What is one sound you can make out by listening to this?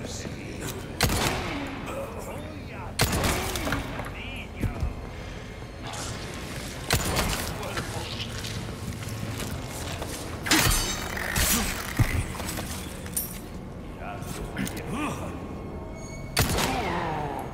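Gunshots ring out with echoing booms.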